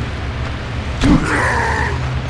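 A heavy blow lands with a dull thud.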